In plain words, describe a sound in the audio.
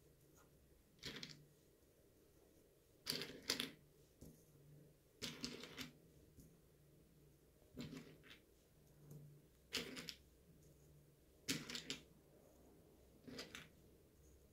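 Dried beans are set down one by one with soft taps.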